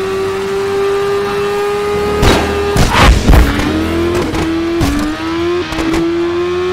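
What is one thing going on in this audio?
A motorcycle engine whines at high revs, shifting gears as it speeds up.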